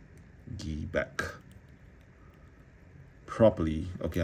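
Small plastic parts click and rub as a toy figure is handled.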